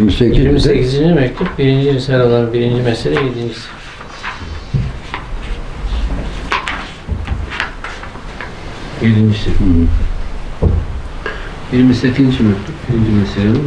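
An elderly man chants in a deep voice through a microphone.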